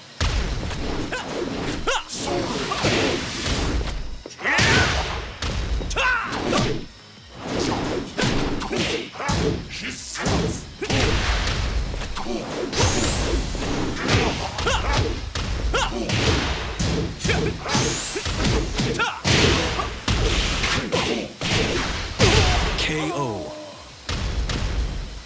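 Punches and kicks land with sharp thuds and cracks.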